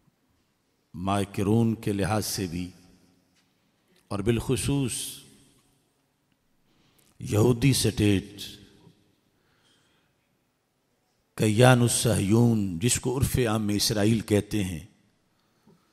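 A man speaks forcefully into a microphone in bursts, with pauses between.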